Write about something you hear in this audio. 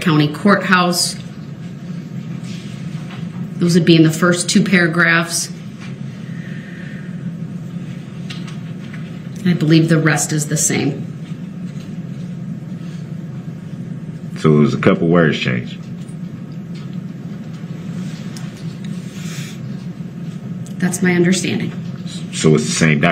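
A woman speaks calmly in short phrases through a microphone.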